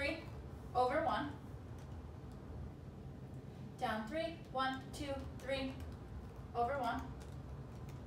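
A young woman speaks calmly, in short phrases, close by.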